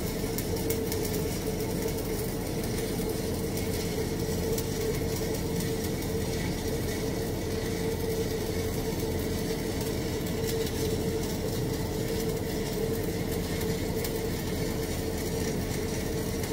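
An electric welding arc crackles and sizzles steadily.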